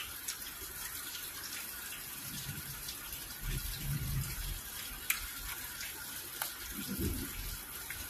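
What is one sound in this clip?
Wet, sticky food squelches between fingers.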